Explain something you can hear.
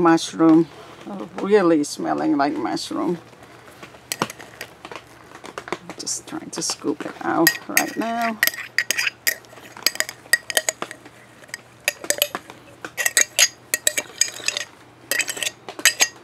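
A metal spoon clinks and scrapes against a glass jar.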